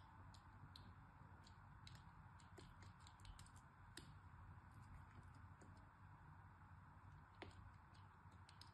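A blade scrapes and crackles through crumbly clay, with small sharp clicks.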